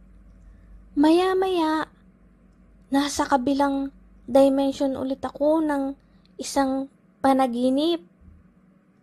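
A young girl speaks with animation in a high voice, in short bursts.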